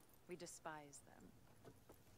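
A woman speaks calmly and proudly.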